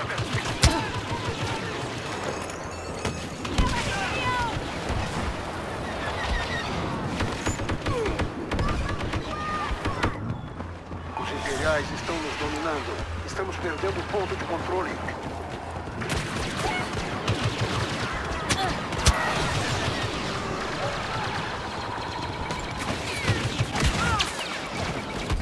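Blaster rifles fire in quick bursts.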